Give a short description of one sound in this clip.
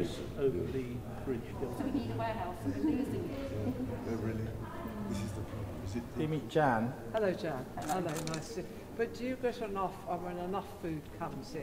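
Several women talk and chat close by.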